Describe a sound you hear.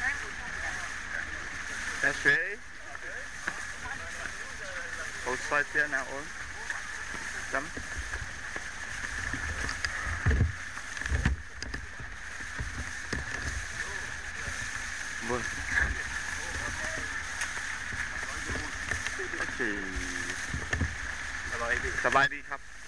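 Adult men and women chat with one another outdoors.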